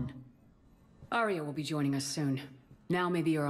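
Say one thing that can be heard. A younger woman answers calmly.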